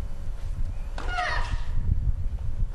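A woman grunts loudly as she serves.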